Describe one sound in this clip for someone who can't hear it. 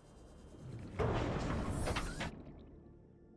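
Air and water rush in a loud hiss as a submarine docks.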